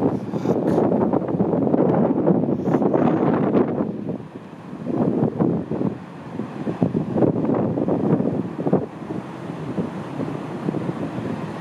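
Strong wind blows outdoors.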